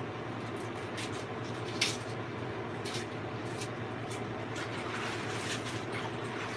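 Dishes clink and rattle softly at a sink.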